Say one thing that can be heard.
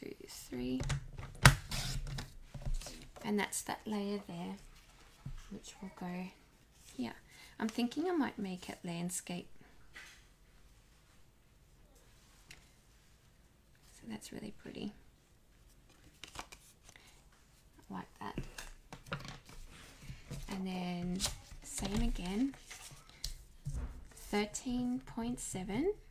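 Stiff card paper rustles and taps as it is handled.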